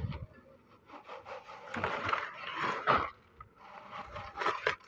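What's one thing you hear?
Wet concrete slides and thuds from a bucket into a mould.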